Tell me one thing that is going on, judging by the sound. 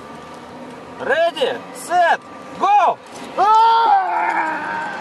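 A man shouts outdoors.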